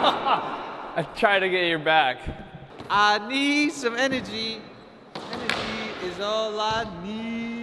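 A young man speaks cheerfully and laughs, close by.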